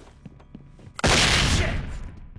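A rifle fires a loud burst.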